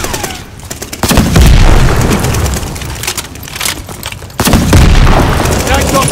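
A rocket launcher fires with a heavy blast.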